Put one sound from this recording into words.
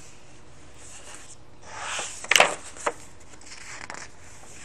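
Paper pages rustle and flip as a book's page is turned.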